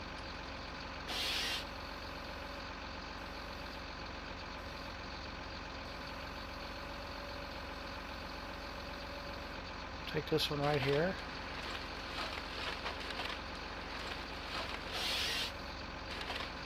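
A harvester head saws through a tree trunk.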